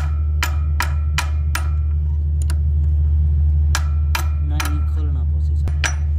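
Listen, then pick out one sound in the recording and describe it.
A hammer strikes metal in sharp ringing blows.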